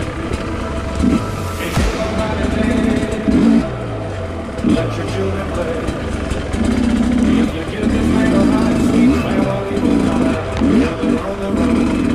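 A dirt bike engine revs and putters up and down close by.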